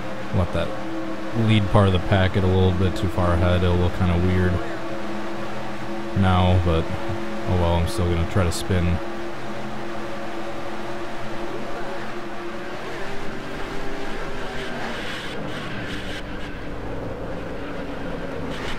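Race car engines roar steadily.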